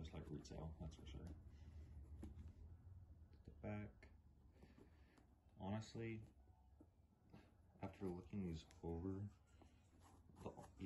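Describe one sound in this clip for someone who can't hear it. Hands rustle and handle a suede shoe.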